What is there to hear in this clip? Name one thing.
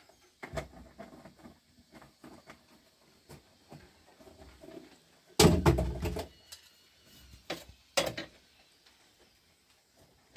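Metal pots and dishes clatter and knock close by.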